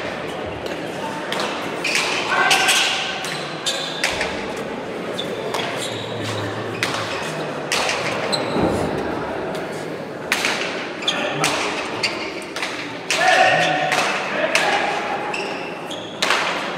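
A ball smacks hard against walls and the floor, echoing in a large hall.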